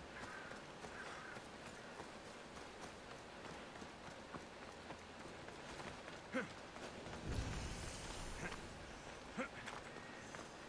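Footsteps rustle through dry grass and scuff over rock.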